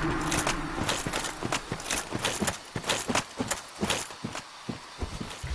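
Heavy armoured footsteps clank quickly on the ground.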